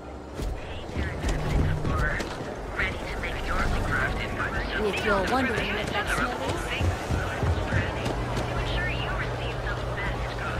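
A crowd of men and women chatters in a busy street.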